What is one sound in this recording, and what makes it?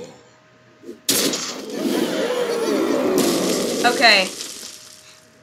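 A fiery blast bursts with a loud crash.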